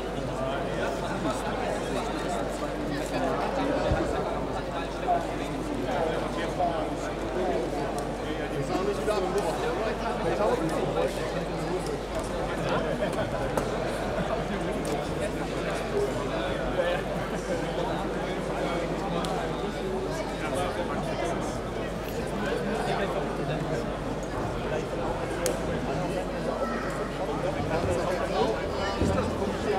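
A crowd of people chatters in a large indoor hall.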